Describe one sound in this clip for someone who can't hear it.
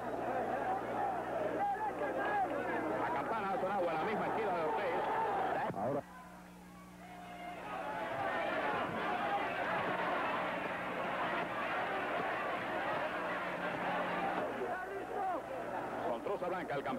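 A large crowd murmurs and cheers around the ring.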